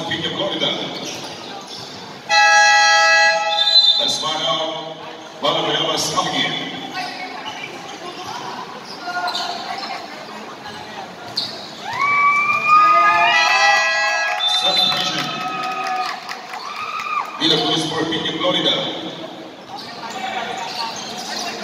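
A crowd chatters and cheers in a large echoing hall.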